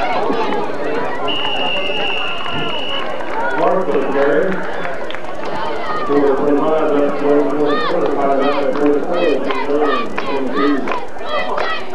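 A crowd of spectators talks and cheers outdoors nearby.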